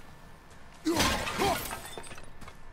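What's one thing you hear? Clay pots shatter.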